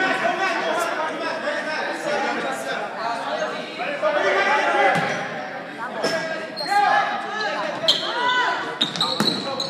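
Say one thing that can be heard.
Sneakers squeak sharply on a hard floor in a large echoing gym.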